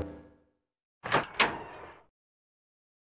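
A wooden door clicks and creaks open.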